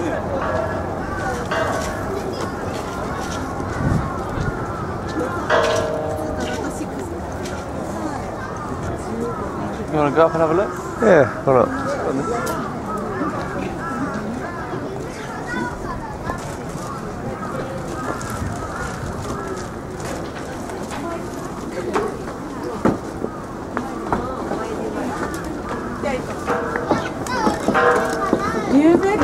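A crowd of people chatters outdoors.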